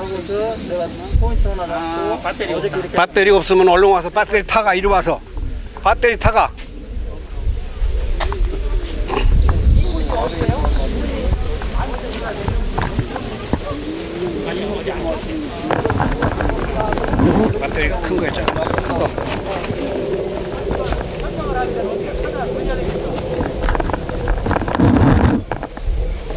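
A man talks nearby, explaining with animation.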